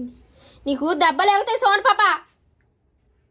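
A young child speaks loudly and excitedly, close by.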